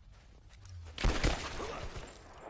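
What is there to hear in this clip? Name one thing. An arrow is loosed from a bow and strikes with a sharp thud.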